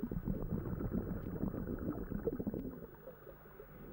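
Water bubbles and rushes, heard underwater.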